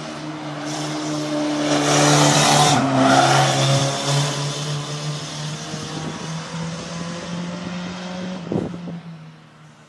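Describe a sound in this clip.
A race car engine roars loudly up close as the car speeds past.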